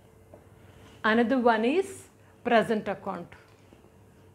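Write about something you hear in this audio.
A woman speaks clearly and calmly, close up.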